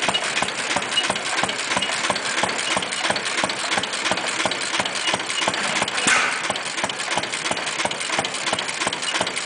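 An old single-cylinder engine chugs and pops with a steady rhythmic beat, close by.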